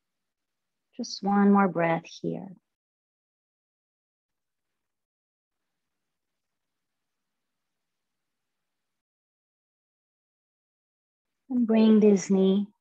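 A woman speaks calmly and softly into a microphone, heard through an online call.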